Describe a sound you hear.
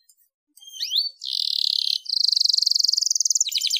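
A canary bursts into a loud, rapid trilling song.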